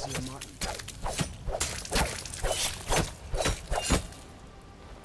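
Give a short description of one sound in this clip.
A blade stabs into a body with repeated wet thuds.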